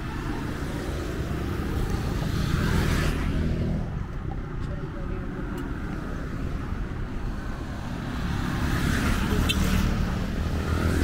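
A motorcycle engine hums by.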